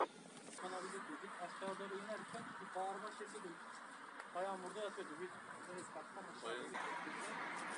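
Several men talk at a distance outdoors.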